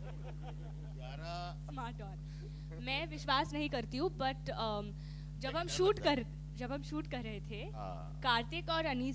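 A young woman speaks into a microphone, laughing at times, heard through loudspeakers.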